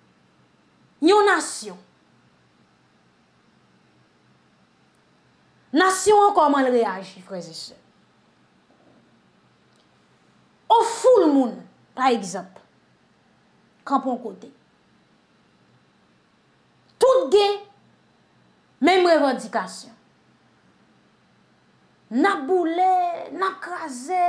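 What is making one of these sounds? A young woman talks with animation into a close microphone, in short bursts with pauses.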